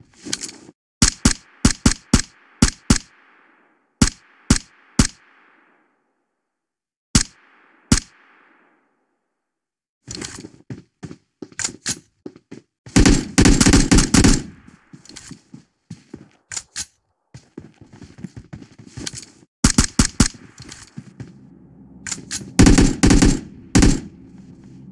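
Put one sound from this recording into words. A rifle fires sharp single shots in quick succession.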